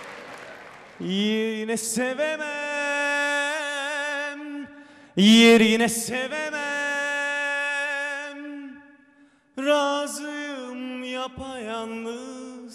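A young man sings slowly into a microphone.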